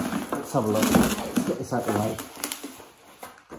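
Plastic bubble wrap rustles and crinkles close by.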